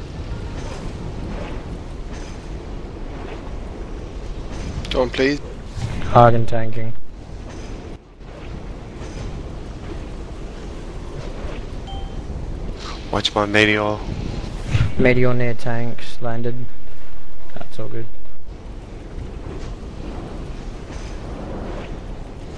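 Fiery spells crackle and whoosh in a battle.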